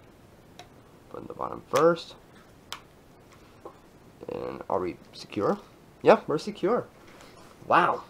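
A plastic case clicks as it snaps into place.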